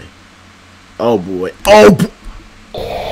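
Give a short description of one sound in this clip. A young man shouts in surprise into a microphone, up close.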